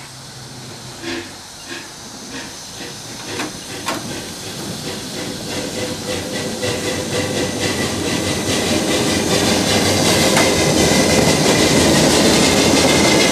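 A steam locomotive chuffs steadily, getting closer and louder.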